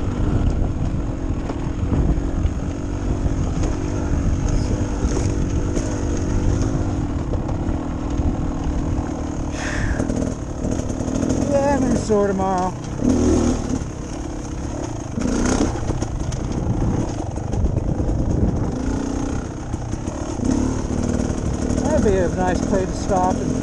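A dirt bike engine hums and revs steadily close by.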